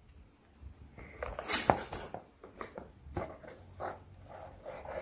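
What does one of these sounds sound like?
Scissors snip through cardboard.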